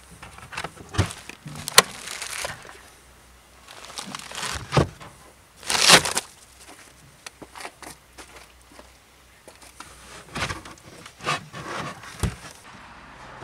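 A boot floor panel thuds and knocks as it is lifted and set down.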